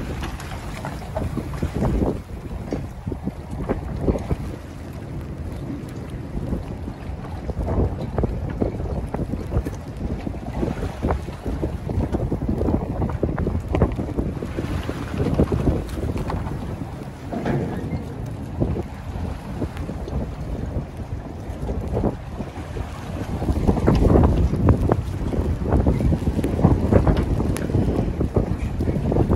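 Choppy water sloshes and slaps against a floating dock.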